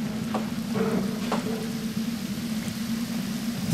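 A torch fire crackles.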